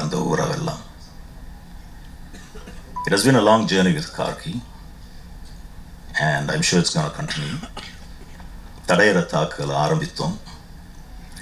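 A man speaks calmly into a microphone, heard through loudspeakers, in short phrases with pauses.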